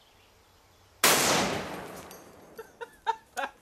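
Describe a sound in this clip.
A rifle fires a single loud shot that rings out outdoors.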